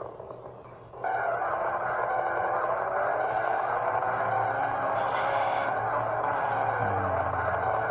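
A car engine roars and revs loudly.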